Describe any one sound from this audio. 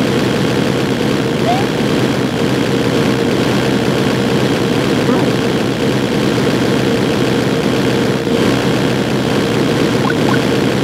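Fireballs whoosh and roar in a steady stream.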